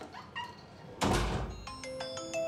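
A door thuds shut.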